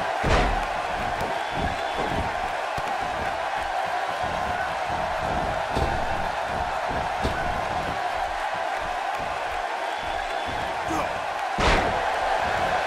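A body slams hard onto a wrestling mat with loud thuds.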